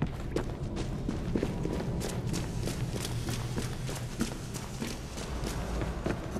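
Quick footsteps run over wet stone in an echoing tunnel.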